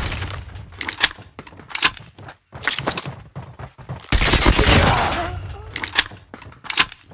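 Sharp single gunshots crack.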